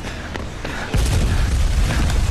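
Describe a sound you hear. A wooden crate crashes down with a heavy thud.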